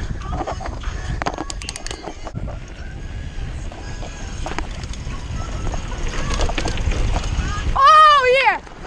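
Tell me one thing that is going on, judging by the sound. A bicycle frame rattles over bumps.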